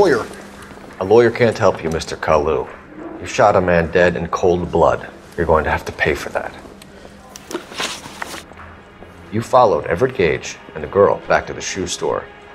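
A young man speaks calmly and firmly.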